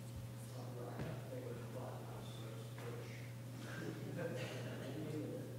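A man speaks calmly and faintly in a large echoing hall.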